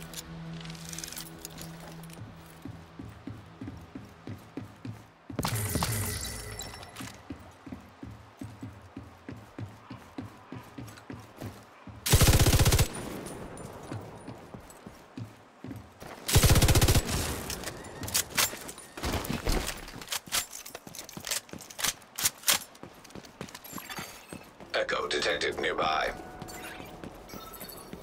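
Footsteps thud quickly on hard ground and metal.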